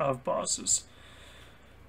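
A young man speaks briefly and animatedly, close to a microphone.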